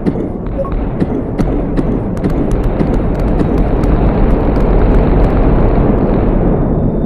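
Sharp blasts crack in quick succession.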